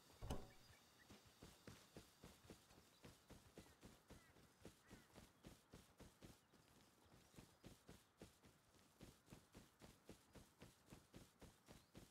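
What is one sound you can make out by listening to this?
Quick footsteps run over dirt and grass.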